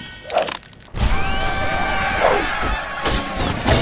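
A short cheerful fanfare plays.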